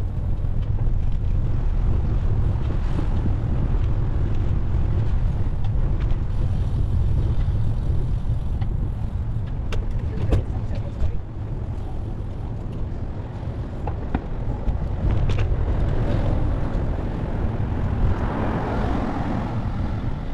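A bicycle rattles and clicks over the path.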